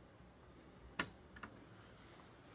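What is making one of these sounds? A jukebox selector button clicks into place.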